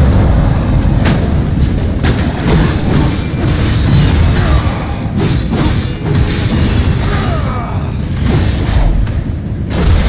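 A blade slashes and strikes with sharp metallic hits.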